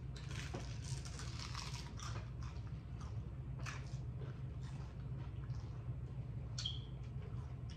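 Hard taco shells crunch as people bite and chew close up.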